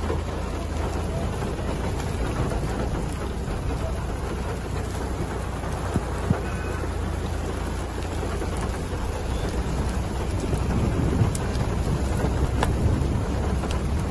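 Wind blows steadily outdoors, rumbling low.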